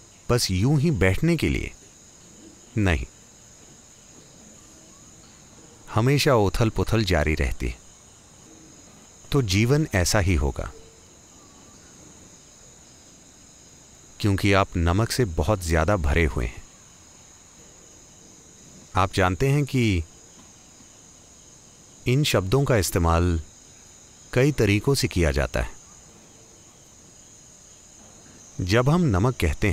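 An elderly man speaks slowly and calmly into a microphone, pausing often between phrases.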